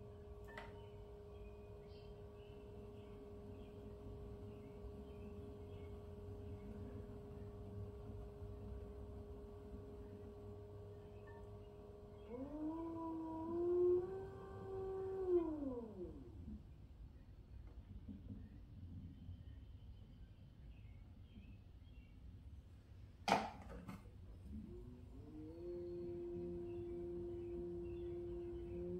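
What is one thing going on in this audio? A potter's wheel motor hums, rising and falling in pitch as it speeds up and slows down.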